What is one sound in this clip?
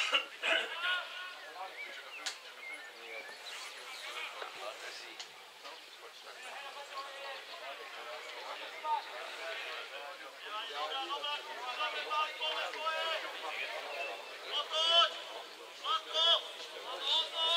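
Adult men talk and call out close by, outdoors.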